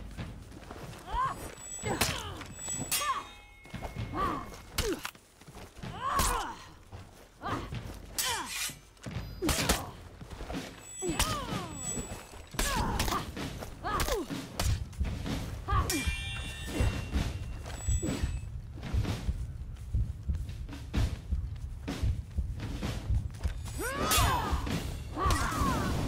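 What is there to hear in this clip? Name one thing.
Metal blades clash and ring in quick sword strikes.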